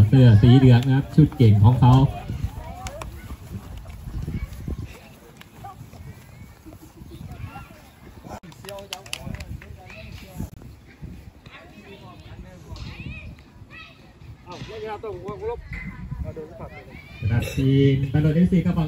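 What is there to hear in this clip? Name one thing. Children slap hands in quick high fives.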